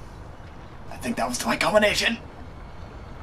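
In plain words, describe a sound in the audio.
A young man shouts out loudly, close to a microphone.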